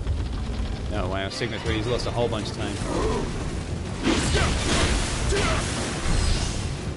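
A large creature croaks and roars.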